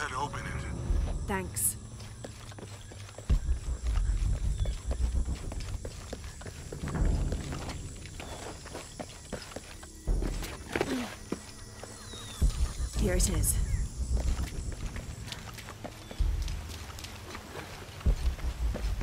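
Footsteps thud on stone as a game character runs.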